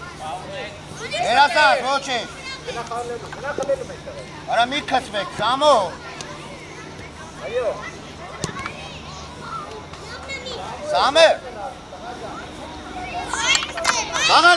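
Children and young players shout to each other outdoors on an open field.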